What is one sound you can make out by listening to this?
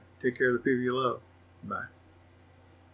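A middle-aged man speaks briefly in a calm voice.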